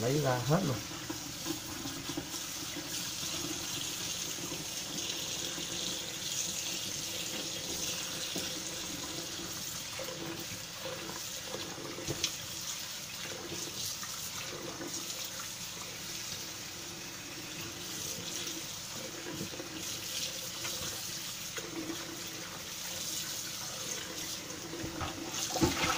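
Water runs steadily from a tap into a metal pot.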